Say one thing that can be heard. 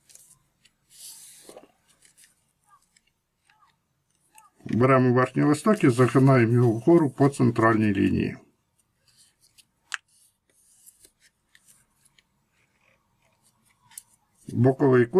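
Paper crinkles softly as it is folded.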